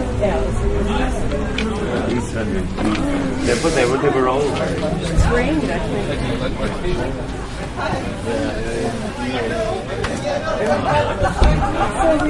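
A crowd of people chatter and talk over one another nearby.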